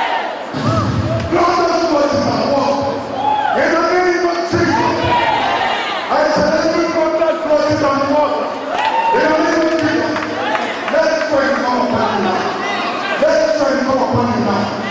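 A crowd of men and women sings together loudly in a large echoing hall.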